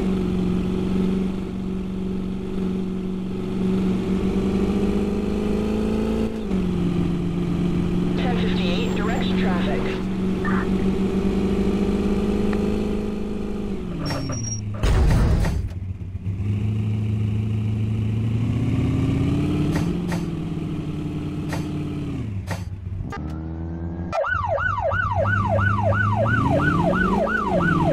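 A police car engine hums, rising and falling in pitch as the car speeds up and slows.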